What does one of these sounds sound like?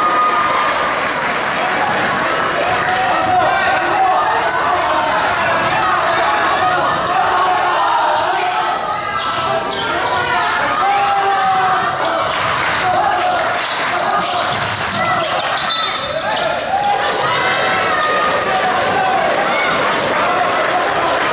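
A crowd of spectators chatters and cheers loudly in an echoing hall.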